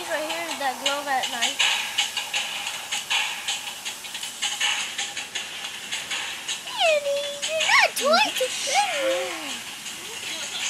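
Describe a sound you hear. A child talks and squeals excitedly close by.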